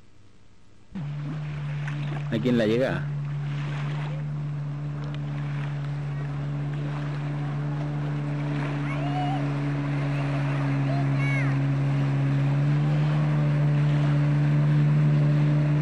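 A jet ski engine drones steadily over the water.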